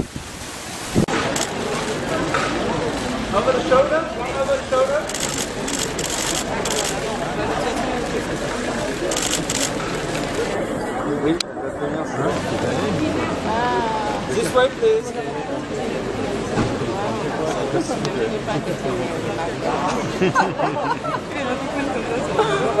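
A crowd chatters and calls out nearby, outdoors.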